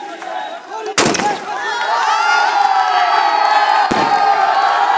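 A firework bursts with a loud bang.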